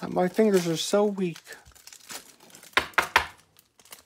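A plastic wrapper crinkles as it is torn open.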